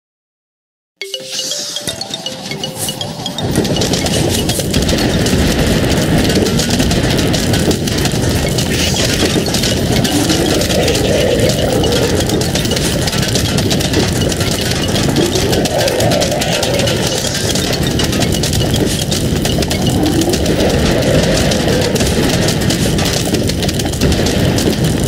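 Game plants rapidly pop and shoot peas in a dense clatter.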